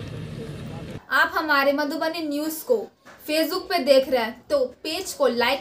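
A young woman speaks clearly and steadily into a microphone.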